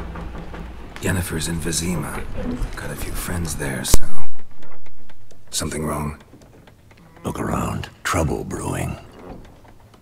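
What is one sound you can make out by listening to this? A middle-aged man speaks calmly in a low, gravelly voice.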